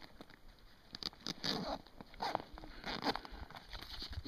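A hand rustles a nylon waist pack.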